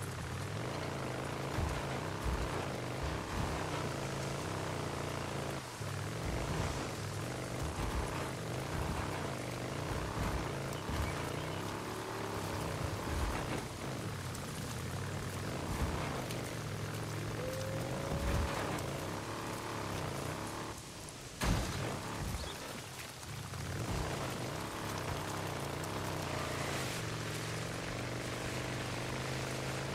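A motorcycle engine hums steadily as it rides along.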